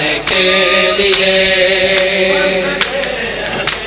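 A man chants loudly into a microphone.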